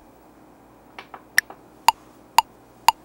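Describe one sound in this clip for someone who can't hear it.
Buttons on a synthesizer click as they are pressed.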